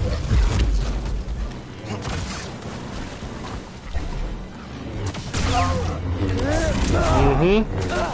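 Energy blades hum and clash with sharp crackles.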